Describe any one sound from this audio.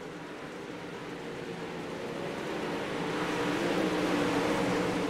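Several race car engines roar loudly together, growing louder as the cars come closer.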